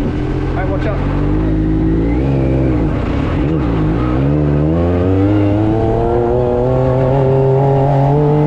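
A buggy engine revs up and rises in pitch as the buggy drives off.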